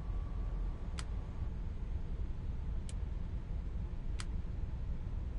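Short electronic clicks sound as menu selections change.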